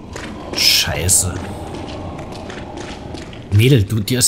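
Heavy footsteps clatter on a stone floor.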